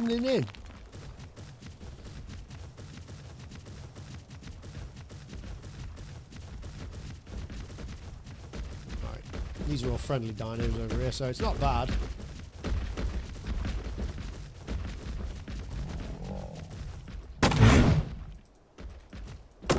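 Heavy footsteps thud rapidly over the ground.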